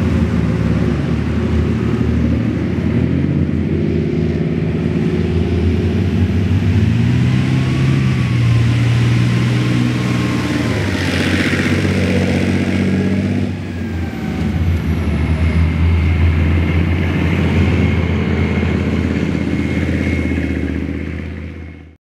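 A heavy tank engine roars and whines, changing pitch as it revs.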